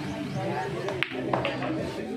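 Pool balls click sharply as a cue strikes.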